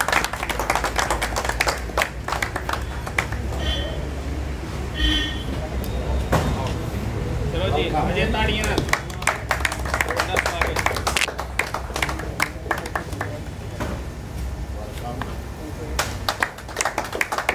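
A small group of people clap their hands.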